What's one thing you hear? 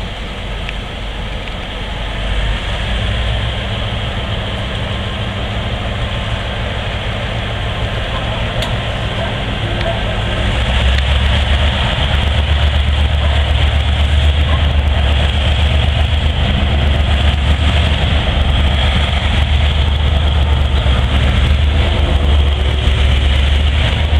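A diesel locomotive engine rumbles steadily, growing louder as it approaches.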